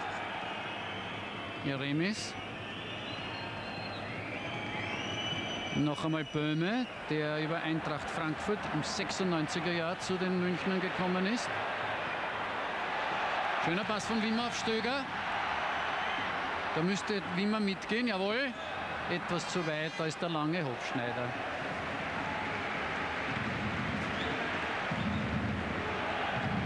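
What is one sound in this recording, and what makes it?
A large stadium crowd roars and cheers steadily outdoors.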